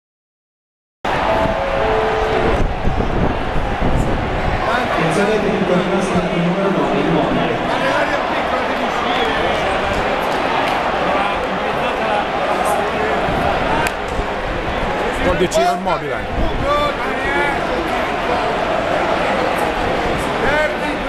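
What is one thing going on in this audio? A large stadium crowd cheers and chants loudly.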